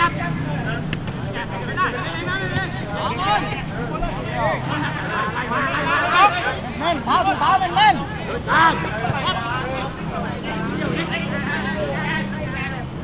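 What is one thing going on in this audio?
Young men shout to one another across an open field.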